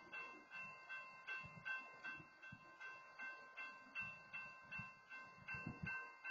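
Freight train wheels clack rhythmically over rail joints as the train rolls past.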